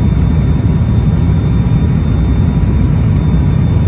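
Wheels rumble on the runway.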